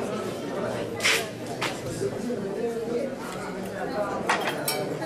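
Plates clink on a metal tray.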